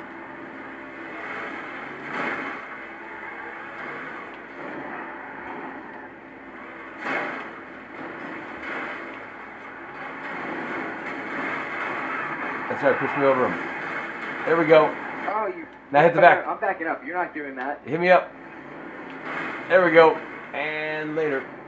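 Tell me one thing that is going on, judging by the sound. A sports car engine roars at speed.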